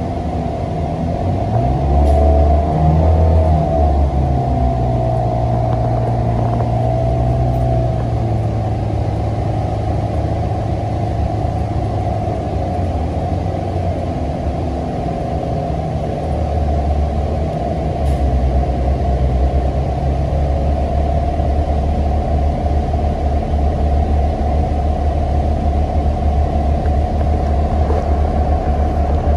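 A bus engine hums and rumbles steadily while the bus drives.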